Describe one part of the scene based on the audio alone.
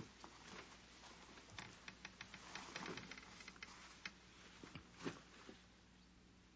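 Fabric of a coat rustles as a woman takes it off.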